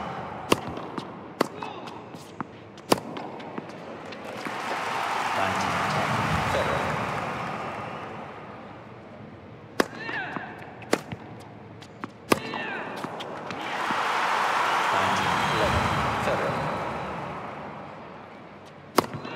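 A tennis racket strikes a ball.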